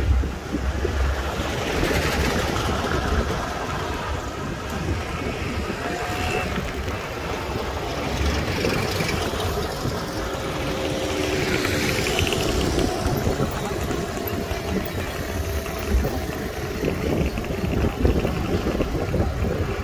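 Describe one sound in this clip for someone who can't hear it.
Wind rumbles and buffets loudly against the microphone outdoors.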